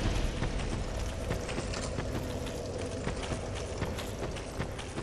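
Footsteps crunch slowly over stony ground.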